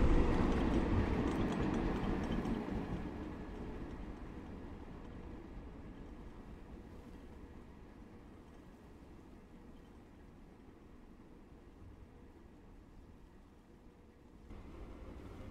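Freight wagons rumble over the rails and slowly fade into the distance.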